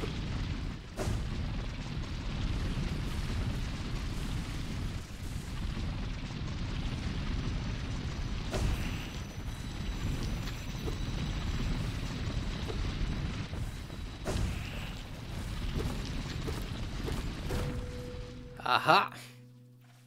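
Game sound effects chime and thud.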